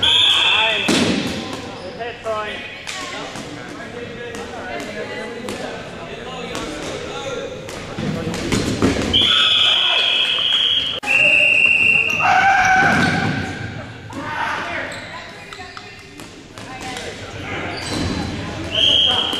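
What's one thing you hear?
A crowd of young men and women shout and cheer nearby.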